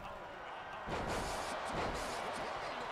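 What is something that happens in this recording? A body slams hard onto a ring mat.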